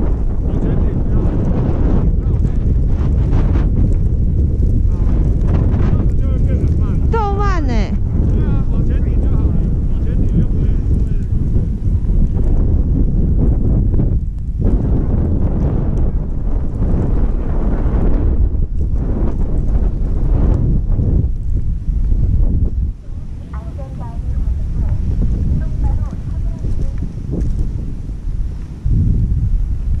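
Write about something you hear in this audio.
Skis scrape and hiss over snow.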